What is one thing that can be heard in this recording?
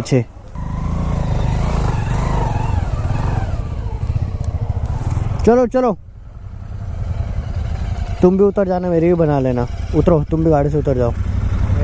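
Motorcycle engines rumble and rev nearby.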